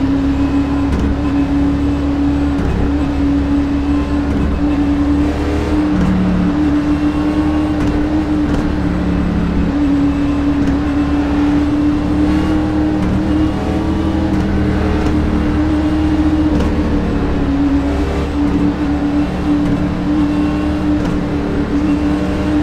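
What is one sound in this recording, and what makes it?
Other race cars roar close by.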